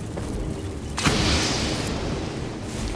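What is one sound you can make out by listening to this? A thrown object bursts with a sharp hiss.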